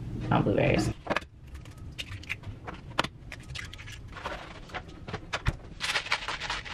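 A knife clicks and taps against a cutting board.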